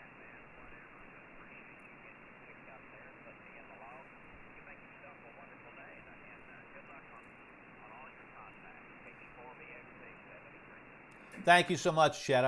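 A shortwave radio hisses with faint, garbled voices.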